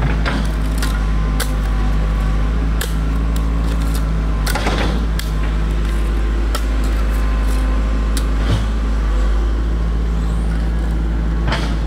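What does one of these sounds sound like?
A hoe chops into soft soil again and again.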